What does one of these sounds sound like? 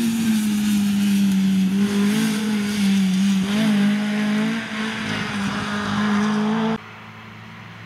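Rally car tyres crunch and spray gravel.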